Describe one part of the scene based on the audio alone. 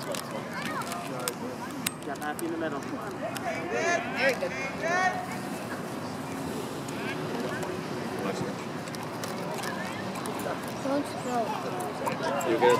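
Young players shout across an open field outdoors.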